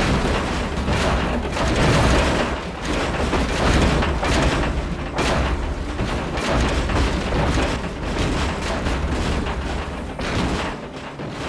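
Explosions boom and rumble repeatedly.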